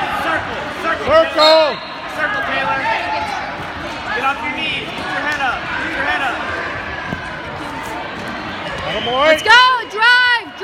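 Nearby spectators shout loudly in excited bursts.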